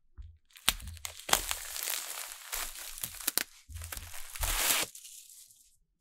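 Plastic wrap crinkles and rustles as hands peel it away.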